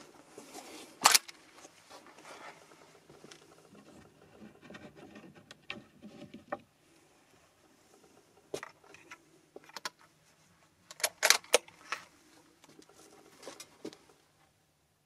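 A rifle's metal action clicks and clacks as it is worked by hand.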